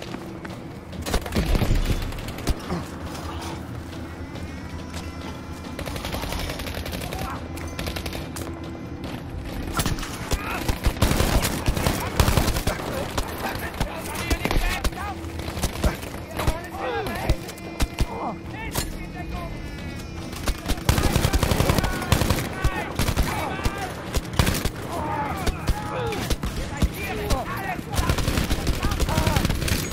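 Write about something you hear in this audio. Rifle shots fire in sharp bursts.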